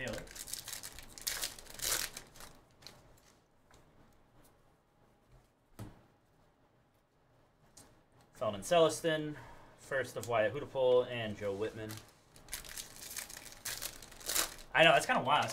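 Foil wrappers crinkle and tear as they are ripped open.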